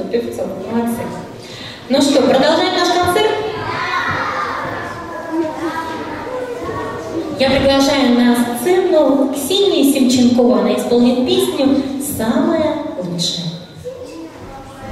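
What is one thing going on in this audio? A young woman speaks with animation through a microphone in a large echoing hall.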